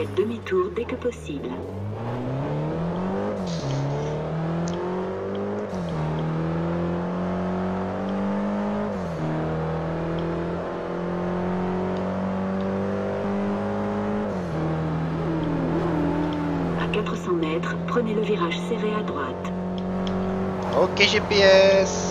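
A car engine revs hard, climbing in pitch and dropping with each gear shift.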